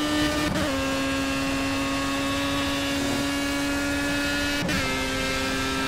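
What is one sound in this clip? A racing car engine drops in pitch briefly as gears shift.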